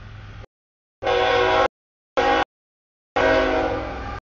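A train horn blows loud, long blasts close by.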